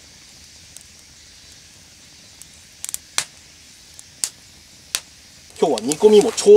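A wood fire crackles and pops outdoors.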